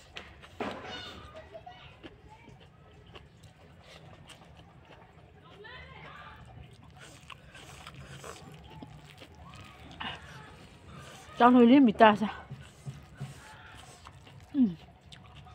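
A woman chews and smacks her lips close by.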